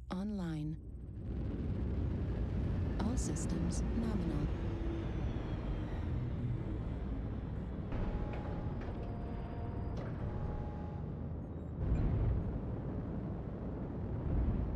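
A heavy machine's engine rumbles deeply and steadily.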